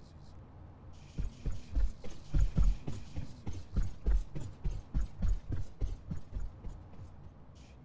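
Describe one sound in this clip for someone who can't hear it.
Footsteps thud in a quick, even rhythm.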